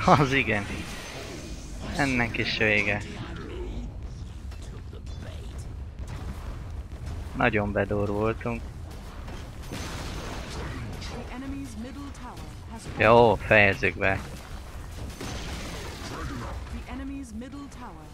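Magic blasts whoosh and crackle during a battle in a video game.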